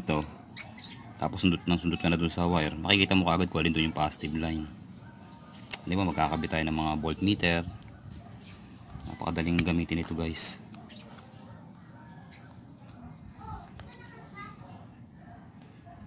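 Plastic wire connectors click and rustle as they are pushed together.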